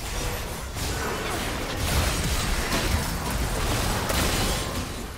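Magic blasts burst and thud during the fight.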